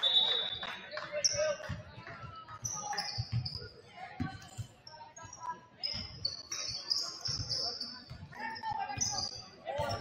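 A basketball bounces with dull thuds in a large echoing gym.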